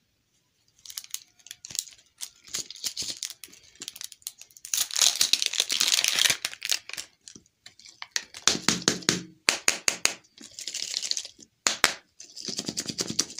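Plastic wrapping crinkles and rustles up close as it is peeled off.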